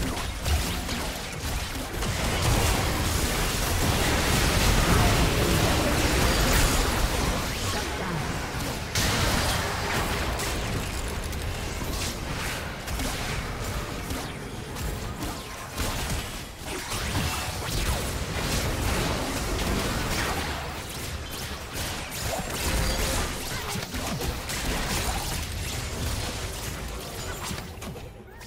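Spells and attacks blast and crackle in a fast video game battle.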